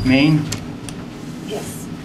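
An elevator button clicks as a finger presses it.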